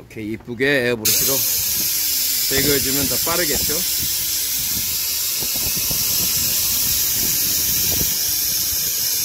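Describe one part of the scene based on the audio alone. Compressed air hisses steadily from a hose.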